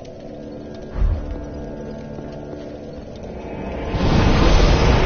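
A bonfire crackles softly.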